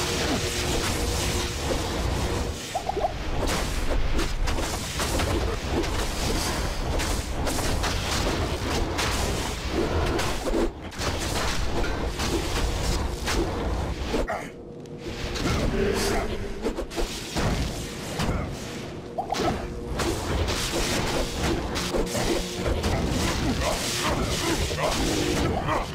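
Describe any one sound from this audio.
Crackling magic bolts and blasts burst again and again amid a dense clash of combat.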